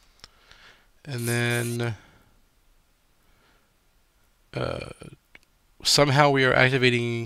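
A man speaks close to a microphone, in short bursts.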